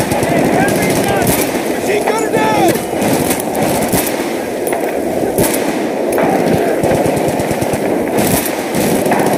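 A sniper rifle fires a loud single shot.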